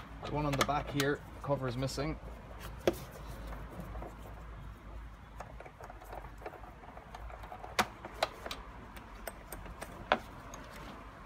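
Hard plastic parts click and knock under a hand.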